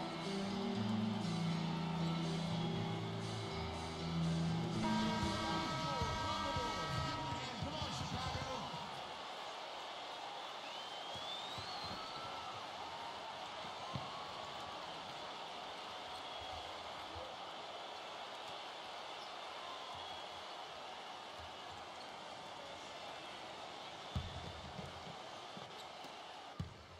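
A large arena crowd murmurs and cheers steadily.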